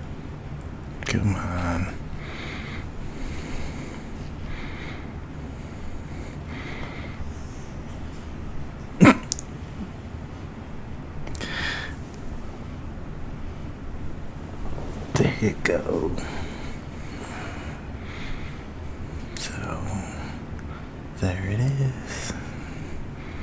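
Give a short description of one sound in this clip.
A man speaks softly and close to a microphone.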